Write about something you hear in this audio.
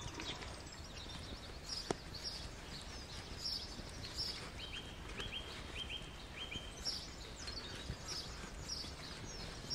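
A leather pouch rustles in someone's hands.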